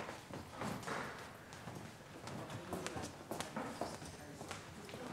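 An adult speaks quietly nearby in a room with some echo.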